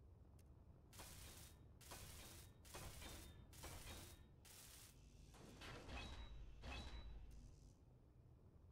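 A welding torch buzzes and crackles in short bursts.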